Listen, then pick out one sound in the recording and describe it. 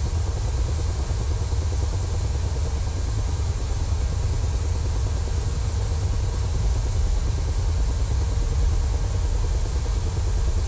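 A helicopter engine hums with a steady low rumble.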